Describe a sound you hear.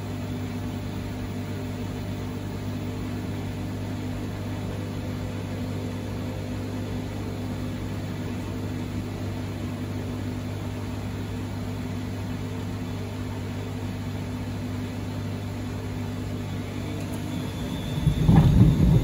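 Laundry tumbles and thuds inside a washing machine drum.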